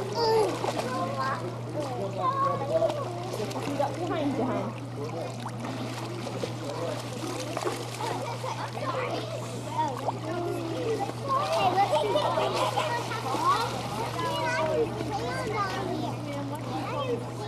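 Young children shout and chatter excitedly outdoors.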